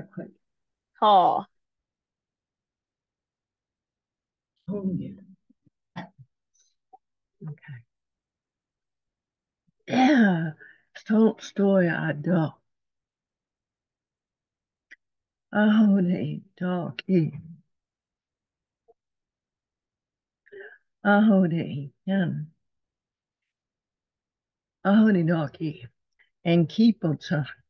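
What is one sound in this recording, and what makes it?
A woman speaks calmly in short bursts with pauses, heard over an online call.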